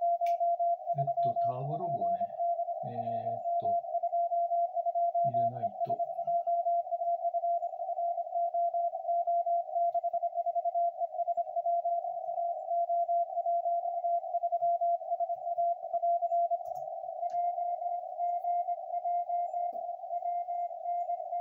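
A steady high beeping Morse code tone plays from a radio receiver.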